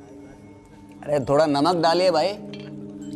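A man speaks in a strained, emotional voice close by.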